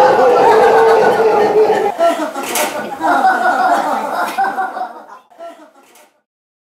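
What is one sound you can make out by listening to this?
A band plays amplified electric guitars, then fades out.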